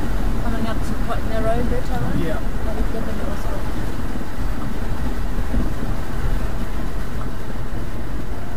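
Water sloshes against a boat's hull.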